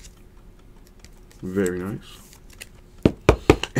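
Plastic card cases click and clatter as hands handle them.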